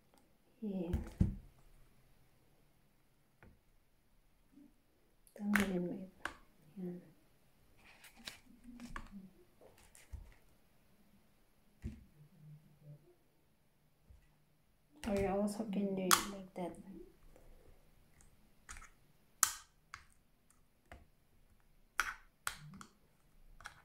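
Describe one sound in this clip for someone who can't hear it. Plastic parts click and snap.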